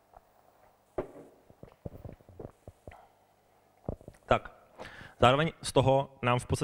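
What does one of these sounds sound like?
A man speaks into a microphone, lecturing to an audience.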